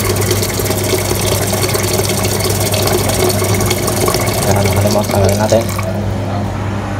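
Water pours from a tap into a metal pot.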